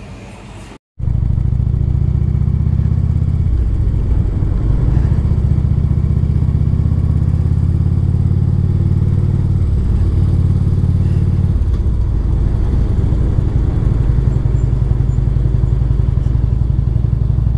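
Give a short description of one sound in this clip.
A motorcycle engine rumbles loudly and steadily.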